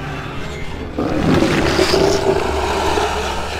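A monster lets out a deep, snarling roar.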